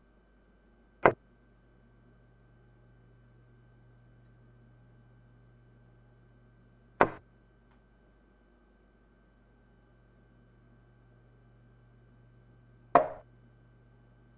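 A chess piece clacks sharply onto a board, now and then.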